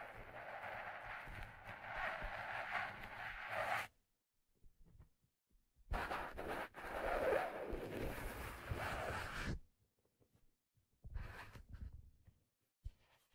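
Hands rub and brush against a stiff hat very close to a microphone.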